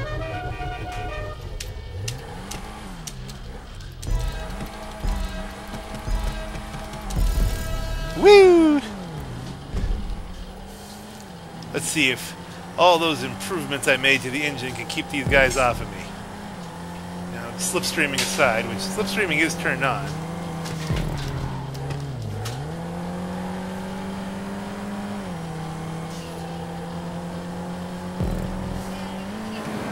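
A car engine hums steadily, its pitch rising and dipping as it revs.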